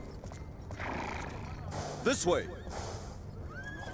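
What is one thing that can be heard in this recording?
A horse's hooves thud on dry ground.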